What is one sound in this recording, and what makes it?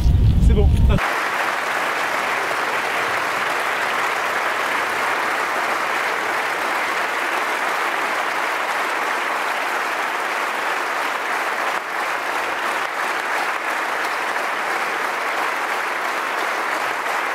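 A large crowd applauds steadily in a big hall.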